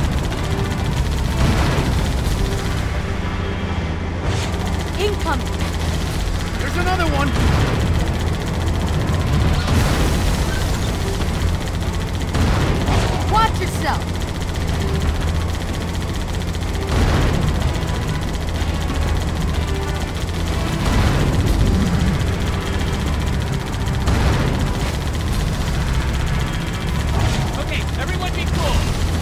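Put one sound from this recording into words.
A tank engine rumbles steadily as the tank rolls forward.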